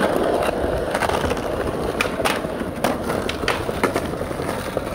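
A skateboard clacks against the ground.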